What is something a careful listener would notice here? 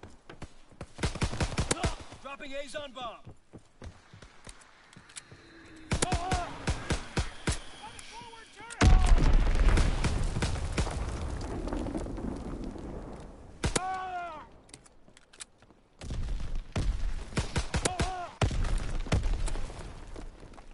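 A pistol fires rapid, sharp shots in bursts.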